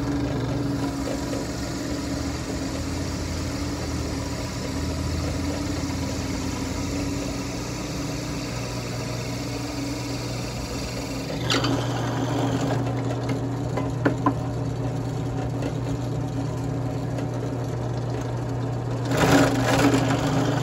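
An electric drill press hums as it runs.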